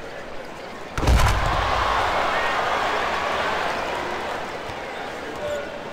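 A crowd in a large arena roars in a sudden cheer that slowly fades.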